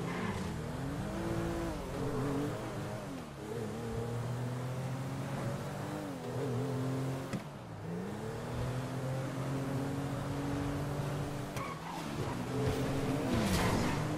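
A car engine revs up and drops in pitch again and again as the car speeds along.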